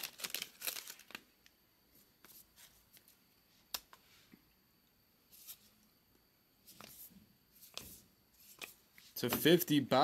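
Trading cards rustle and flick as they are handled.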